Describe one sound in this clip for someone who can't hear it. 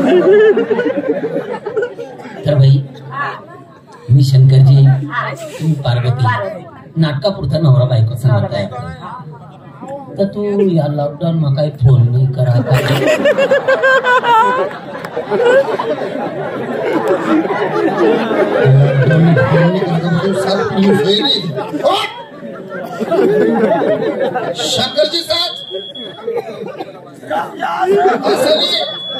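Men speak loudly into a microphone over loudspeakers, with animation.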